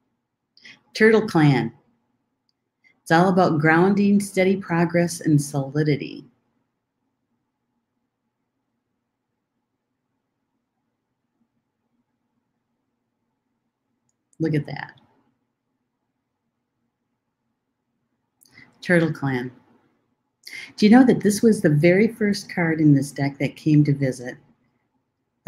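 A middle-aged woman speaks calmly into a microphone, with pauses.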